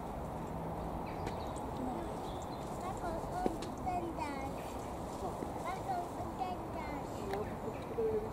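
Leaves rustle as a small animal pushes through low bushes.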